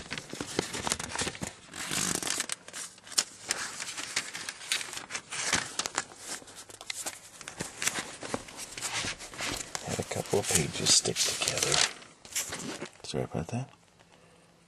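Thin paper pages rustle and flip close by.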